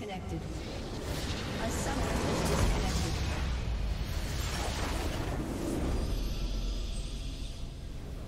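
A large explosion rumbles loudly and fades.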